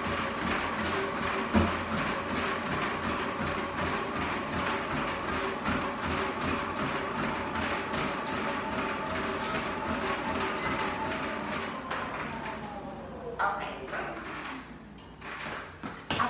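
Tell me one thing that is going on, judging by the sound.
A treadmill motor whirs and slowly winds down.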